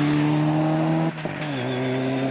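A rally car's engine briefly cuts out during a gear change.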